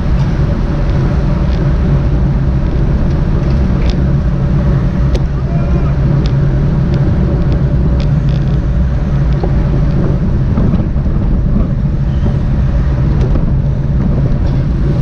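Wind rushes loudly past, close up and steady.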